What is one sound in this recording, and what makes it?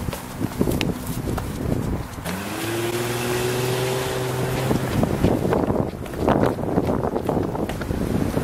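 Quick footsteps slap on pavement as a young man runs.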